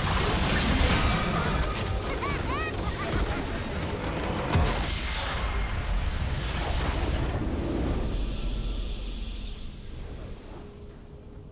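Game spell effects crackle, whoosh and clash loudly.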